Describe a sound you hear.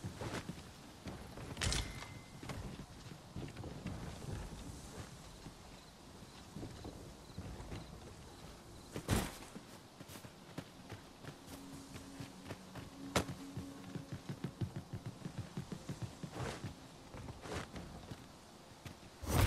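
Footsteps thud steadily on wooden boards and stone.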